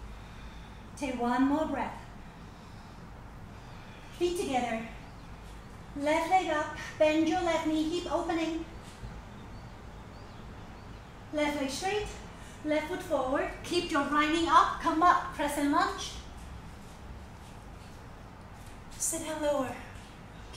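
A woman speaks calmly and clearly close by, giving instructions.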